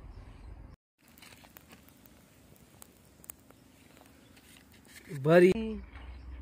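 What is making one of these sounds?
A match flares and hisses close by.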